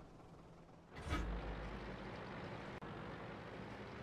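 A light tank's engine rumbles as it drives.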